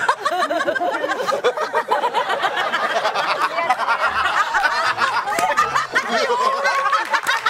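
A crowd of people laughs and cheers.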